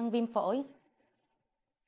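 A young woman speaks briefly and calmly nearby.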